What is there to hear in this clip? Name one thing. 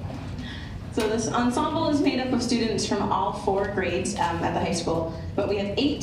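A young woman speaks clearly through a microphone and loudspeakers in a large hall.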